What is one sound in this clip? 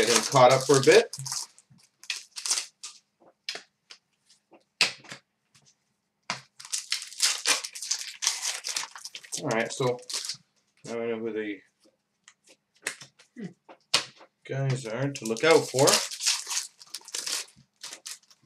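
Plastic wrapping crinkles.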